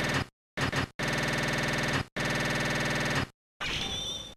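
A video game's score counter tallies with rapid electronic beeps.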